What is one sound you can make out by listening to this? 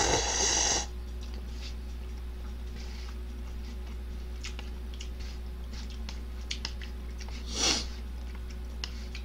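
A young man chews and smacks his lips.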